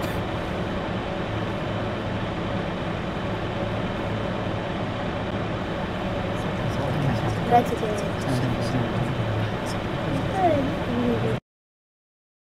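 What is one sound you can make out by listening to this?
A bus engine hums steadily while idling.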